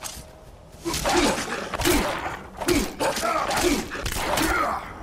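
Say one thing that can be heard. Blows strike with heavy thuds.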